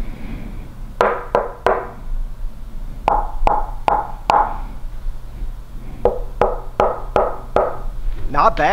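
Knuckles knock on a hollow wooden box with resonant thuds.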